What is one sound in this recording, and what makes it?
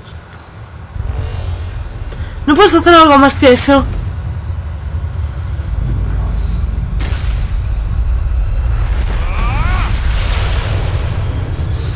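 A deep magical rumble swells and roars.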